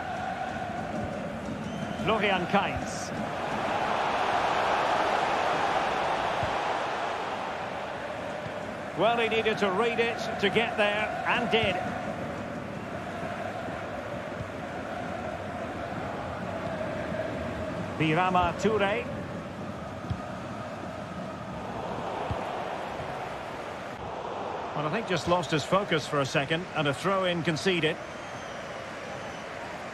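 A large stadium crowd murmurs and cheers steadily, swelling now and then.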